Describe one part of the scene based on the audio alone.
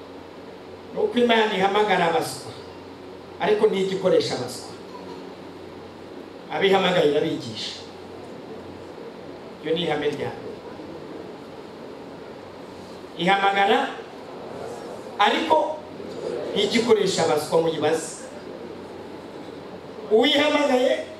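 A man preaches with animation through a microphone, in short bursts with pauses, in a reverberant hall.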